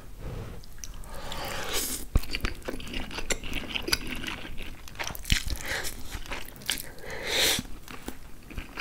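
A man slurps noodles loudly up close.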